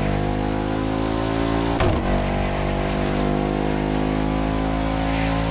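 A W16 hypercar engine roars at full throttle at high speed.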